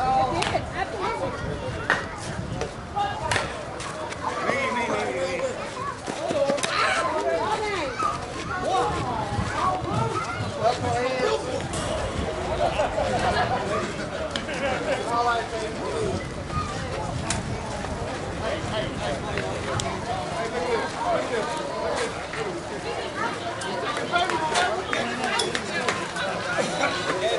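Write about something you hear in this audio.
Men and women chatter and call out nearby outdoors.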